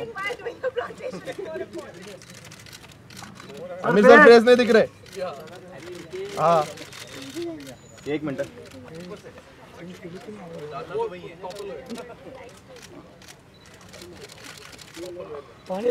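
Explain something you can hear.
Several men and women talk and call out nearby outdoors.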